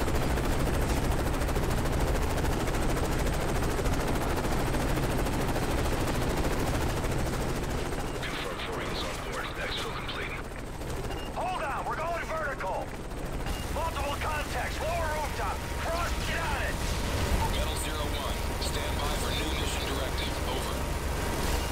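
A helicopter's rotor thumps and roars steadily.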